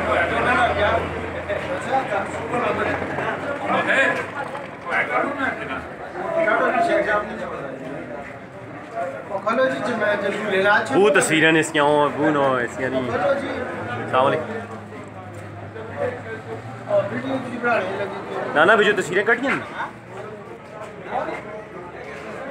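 Several men talk and greet each other close by, outdoors.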